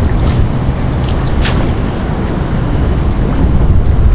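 A fishing net splashes into the water.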